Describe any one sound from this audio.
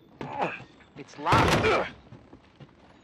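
A wooden door rattles loudly as it is pushed.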